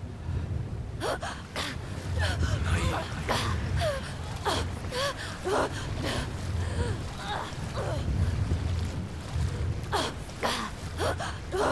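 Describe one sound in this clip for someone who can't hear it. Water splashes and sloshes as someone swims.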